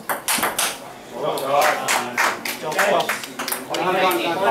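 Spectators cheer and shout loudly.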